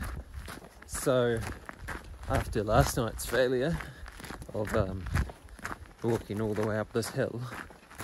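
A man talks close by in a low voice.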